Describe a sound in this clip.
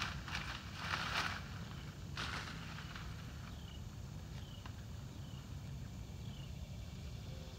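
Garden loppers snip through stems.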